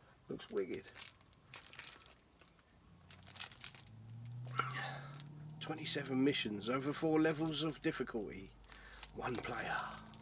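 A plastic game case crinkles and clicks in a man's hands.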